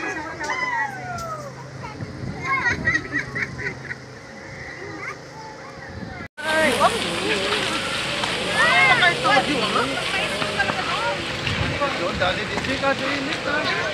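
Several people chatter nearby outdoors.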